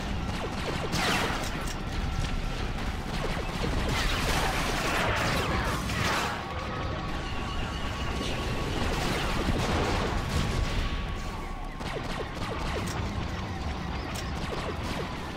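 Blaster rifles fire in a sci-fi battle.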